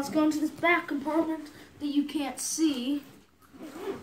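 A boy speaks with animation close by.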